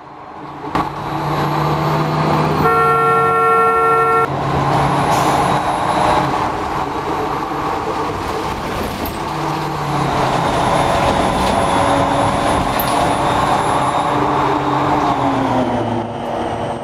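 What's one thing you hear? A bus engine hums and whines loudly as the bus drives along.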